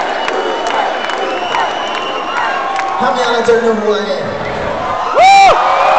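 A crowd cheers and shouts in a large echoing hall.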